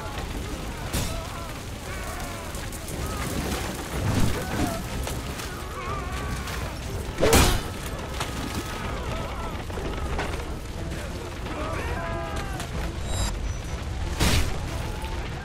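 Swords clash with sharp metallic rings.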